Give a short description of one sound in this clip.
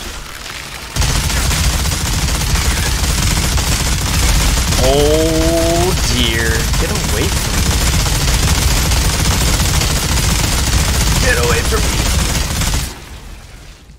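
Heavy gunfire rattles loudly and without pause.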